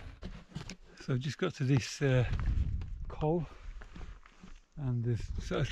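A middle-aged man speaks close by, outdoors in wind.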